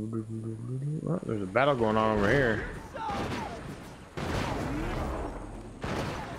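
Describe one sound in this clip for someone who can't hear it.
A man talks animatedly into a close microphone, his voice rising in pitch.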